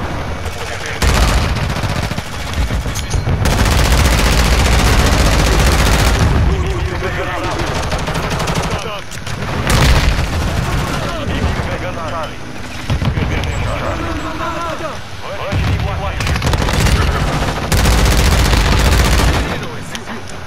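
Automatic rifles fire in loud rapid bursts.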